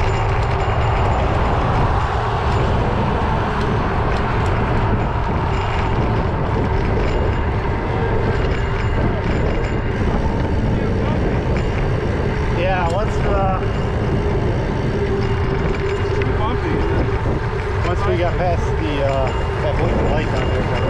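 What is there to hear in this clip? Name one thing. A car engine hums at a steady pace.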